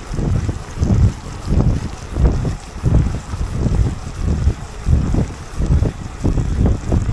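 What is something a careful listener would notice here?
Wind buffets loudly in gusts outdoors.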